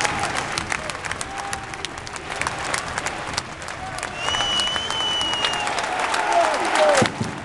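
A fan close by claps hands.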